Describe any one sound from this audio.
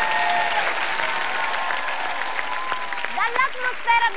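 A crowd claps along.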